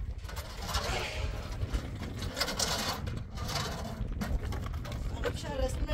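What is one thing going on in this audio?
A metal wheelbarrow rattles as it is pushed over rocky ground.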